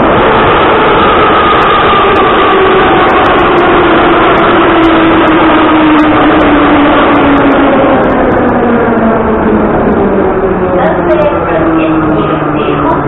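Train motors whine and slowly fall in pitch as the train slows down.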